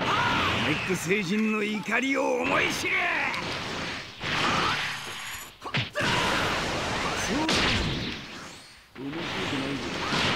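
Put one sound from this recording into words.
Energy blasts whoosh and explode.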